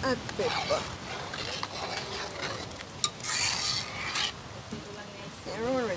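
A metal spoon stirs and clinks in a pot.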